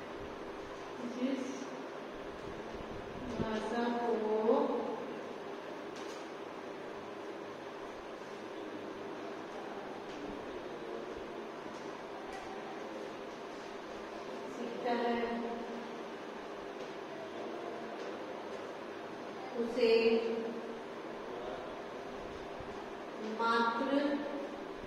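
A woman speaks calmly in short bursts nearby.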